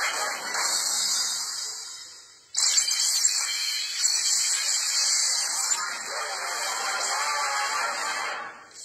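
Electronic music with sound effects plays through a small phone speaker.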